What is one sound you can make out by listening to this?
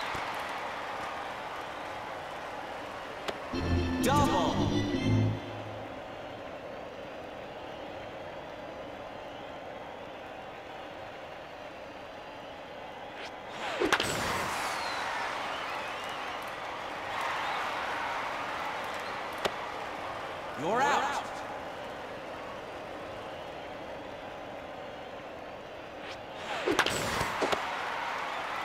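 A stadium crowd cheers and murmurs.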